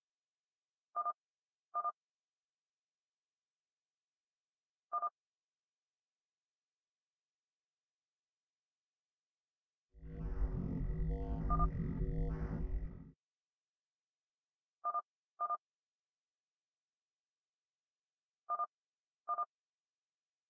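Short electronic beeps sound in quick pairs, now and then.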